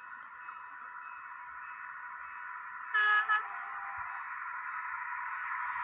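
An electric train approaches from a distance with a steady, slowly growing whine.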